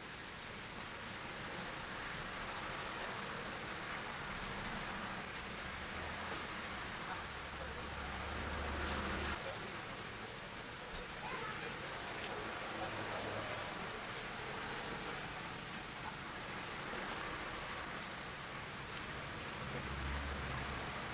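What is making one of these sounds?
Fingers softly rub chalky pastel on paper.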